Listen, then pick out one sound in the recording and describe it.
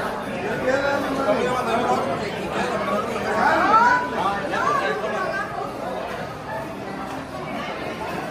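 A middle-aged woman talks and laughs close by.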